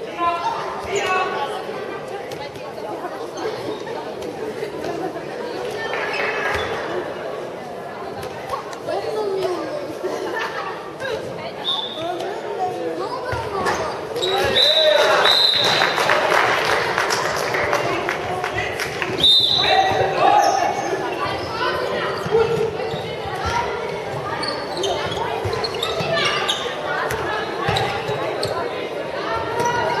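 Young girls call out and shout to each other.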